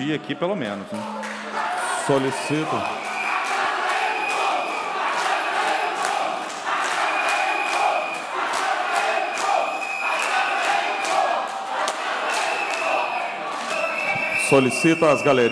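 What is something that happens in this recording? A crowd shouts and clamors.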